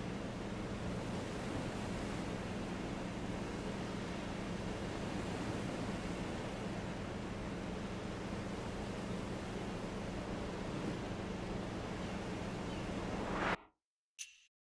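Ocean waves wash steadily against a shore.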